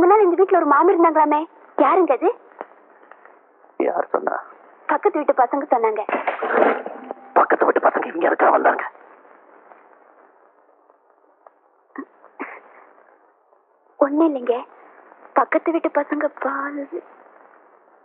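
A woman speaks in a clear, even voice.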